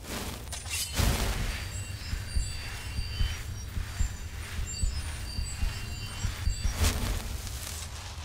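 A magic spell whooshes and shimmers with a ringing hum.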